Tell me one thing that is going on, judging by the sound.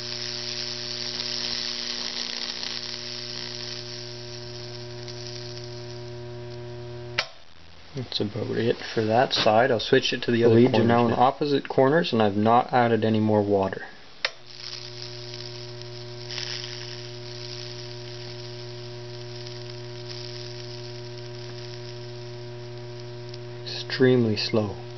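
An electric transformer hums with a steady buzz.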